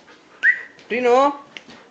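A cat lets out a long, wavering meow.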